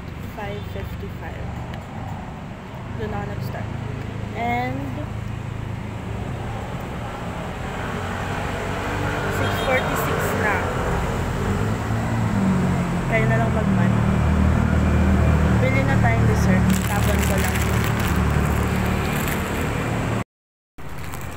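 A young woman talks close to the microphone in a casual way.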